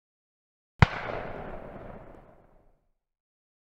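A loud explosion booms and then rumbles away.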